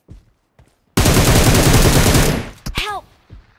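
A rifle fires a rapid, loud burst of shots.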